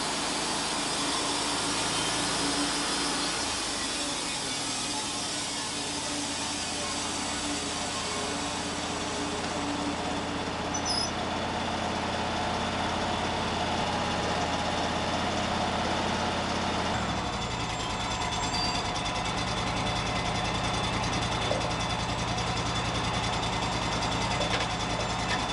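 A sawmill engine drones steadily throughout.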